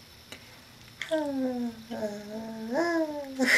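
A young woman speaks close by in a high, playful, sing-song voice.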